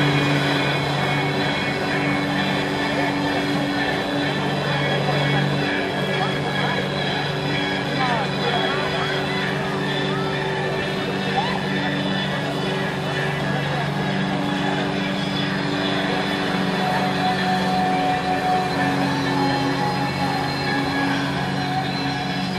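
A jet ski engine runs under load, droning.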